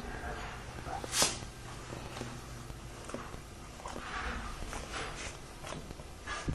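A hand softly strokes a cat's fur with a gentle rustle.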